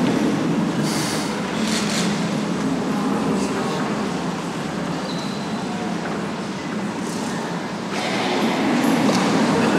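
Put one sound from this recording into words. A crowd of people murmurs in the background.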